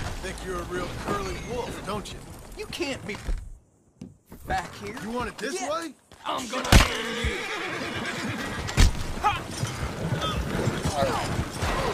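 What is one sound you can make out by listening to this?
Horses pull a wagon that rattles along a dirt track.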